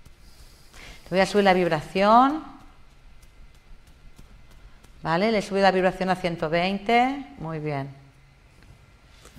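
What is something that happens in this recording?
A woman speaks with animation into a nearby microphone.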